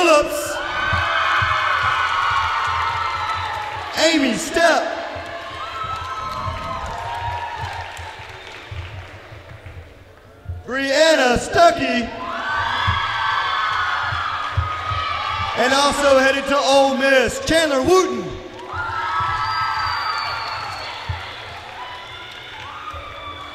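A crowd of teenagers claps hands in an echoing gym.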